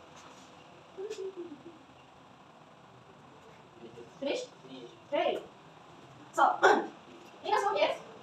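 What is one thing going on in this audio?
A young woman speaks in short bursts in a slightly echoing room.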